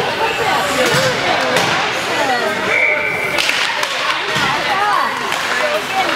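Ice hockey skates scrape across the ice.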